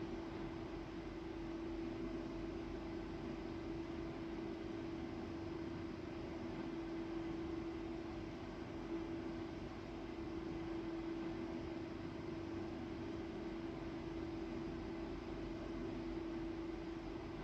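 A train hums steadily in a tunnel.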